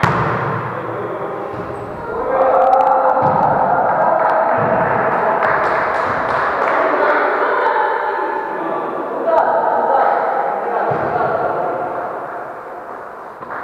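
Young people call out to each other across an echoing hall.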